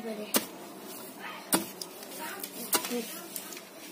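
A wooden pestle thumps into a bowl of grain.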